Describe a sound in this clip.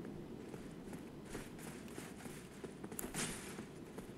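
Armoured footsteps crunch on the ground.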